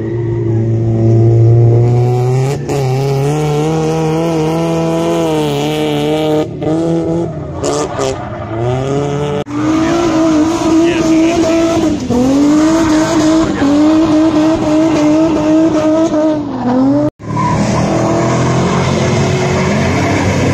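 A car engine roars and revs up and down nearby.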